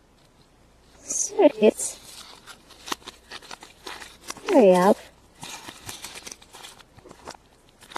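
A plastic wrapper crinkles and rustles.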